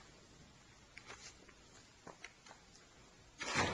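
A man's footsteps tap softly on a hard floor.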